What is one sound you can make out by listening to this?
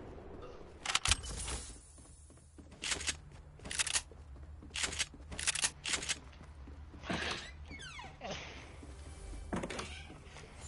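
Footsteps thud on wooden floors and stairs.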